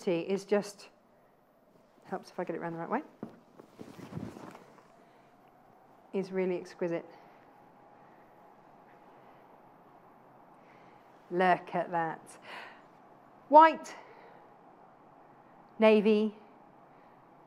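A young woman speaks with animation into a microphone, in short bursts with pauses.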